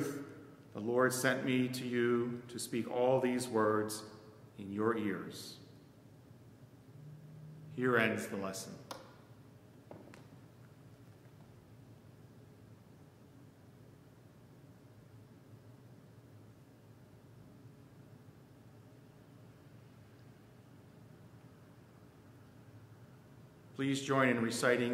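An elderly man speaks calmly and slowly into a microphone, with pauses.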